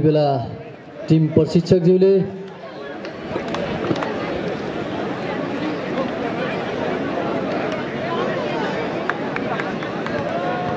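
A large outdoor crowd chatters and cheers.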